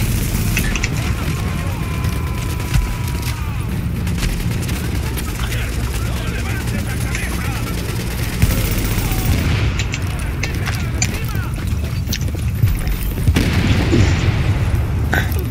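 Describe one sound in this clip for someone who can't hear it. Footsteps crunch through snow as a character runs.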